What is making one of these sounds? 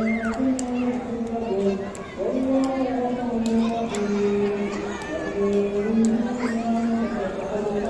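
Children shout and laugh as they run about.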